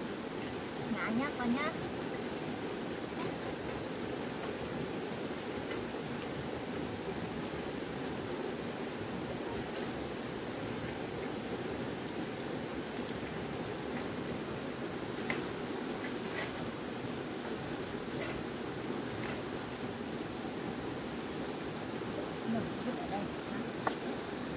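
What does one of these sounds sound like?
A small child babbles nearby.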